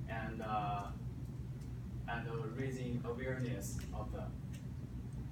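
A young man speaks calmly in a room.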